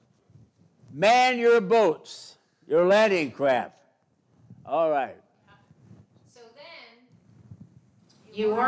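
An elderly man speaks slowly into a microphone, heard through a loudspeaker in a large room.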